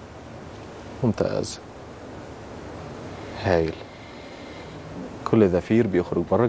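A man speaks slowly and calmly into a microphone, in short phrases with pauses.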